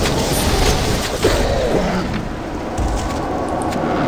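Metal blades clash and clang in a fight.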